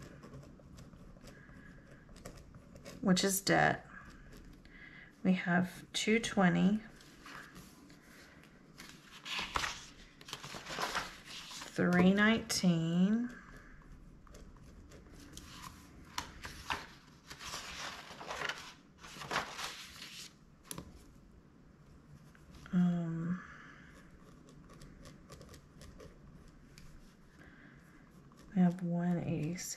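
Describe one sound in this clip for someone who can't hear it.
A pen scratches on paper as someone writes.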